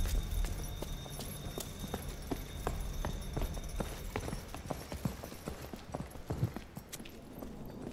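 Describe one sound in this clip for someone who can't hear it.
Footsteps tap at an even pace.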